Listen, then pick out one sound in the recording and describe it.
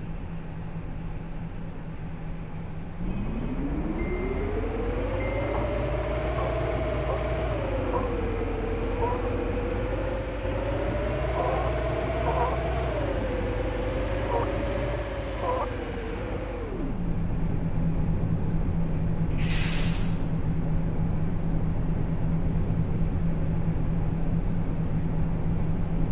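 A bus engine idles with a low steady drone.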